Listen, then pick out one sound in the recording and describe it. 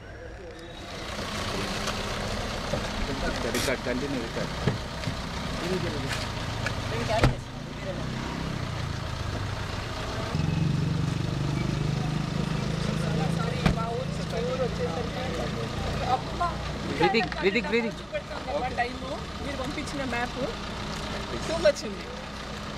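Several men talk and murmur nearby outdoors.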